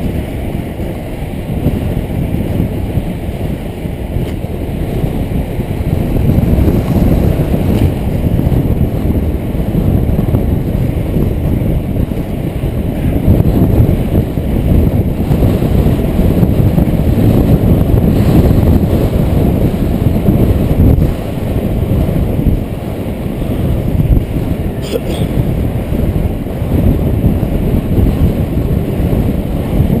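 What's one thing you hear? Wind rushes and buffets heavily while skating at speed outdoors.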